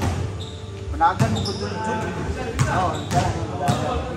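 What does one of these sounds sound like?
Young men call out to each other across an echoing court.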